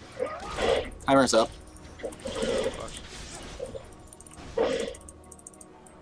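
Fighting sound effects from a video game crackle and whoosh.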